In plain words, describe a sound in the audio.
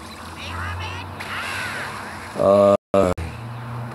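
An energy blast roars and rushes.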